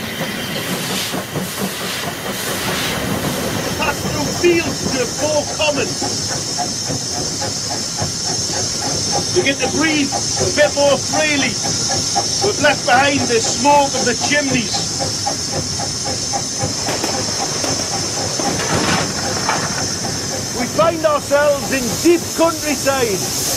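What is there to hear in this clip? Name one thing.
A steam locomotive rumbles and hisses steadily.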